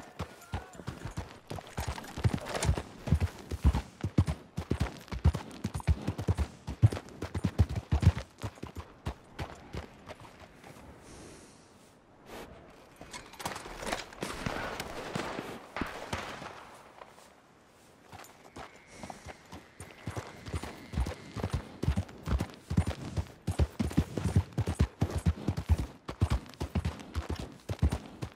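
A horse's hooves clop steadily on a dirt road.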